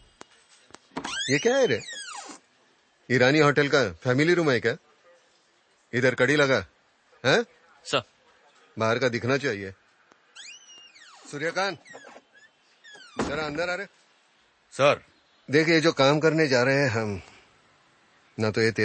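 An older man speaks sternly and firmly, close by.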